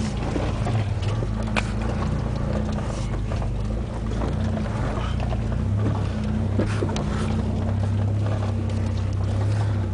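Tyres crunch over rocks and gravel.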